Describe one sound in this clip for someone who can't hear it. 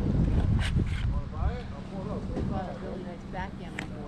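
A man talks nearby, outdoors.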